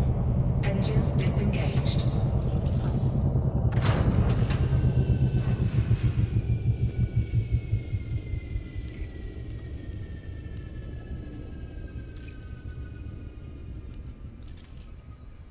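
A spaceship engine hums low and steady, then fades.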